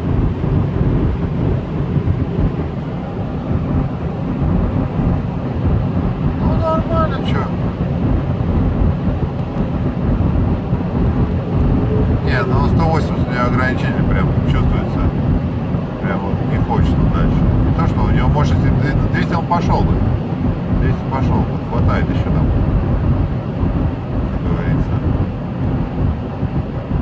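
An engine hums steadily as a car drives fast.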